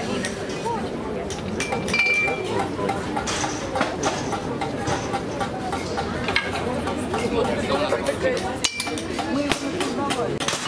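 A hammer strikes metal on an anvil with a ringing clang.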